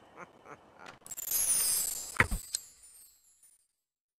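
A bright game chime rings out with a shimmering sparkle.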